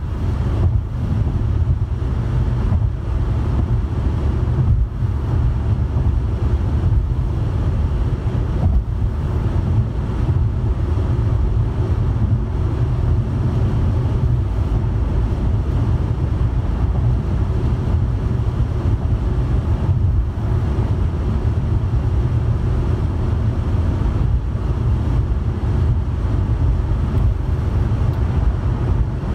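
A car's engine hums steadily as it drives along a highway.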